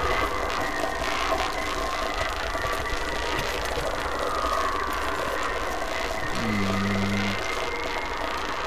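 Footsteps walk on a hard, wet floor.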